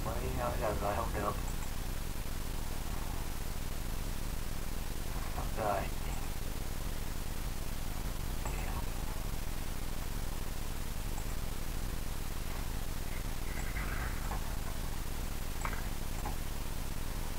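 An elderly man speaks calmly and haltingly through an online call, with long pauses.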